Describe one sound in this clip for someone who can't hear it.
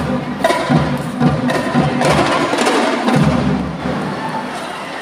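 Marching band drums beat in a quick rhythm.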